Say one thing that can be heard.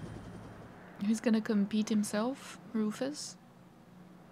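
A young woman speaks briefly and with animation, close to a microphone.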